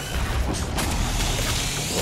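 A monster is torn apart with a wet crunch.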